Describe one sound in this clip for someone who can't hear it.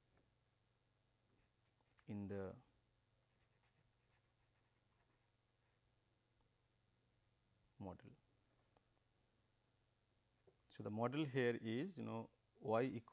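A marker scratches softly on paper.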